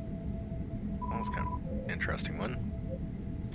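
Short electronic chimes sound as a menu opens.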